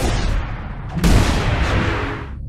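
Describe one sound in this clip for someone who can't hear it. A body slams into the ground with a heavy thud.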